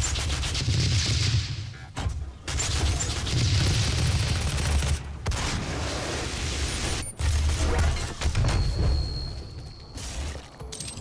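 Gunfire blasts loudly and rapidly.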